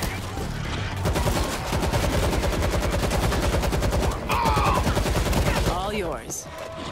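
A gun fires rapid bursts of shots close by.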